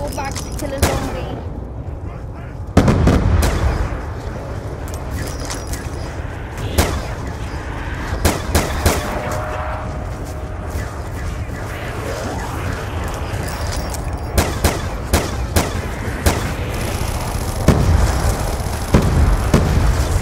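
Zombies growl and groan nearby.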